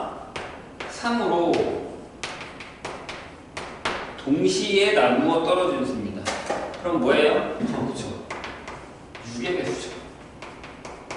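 A young man speaks calmly in an echoing room.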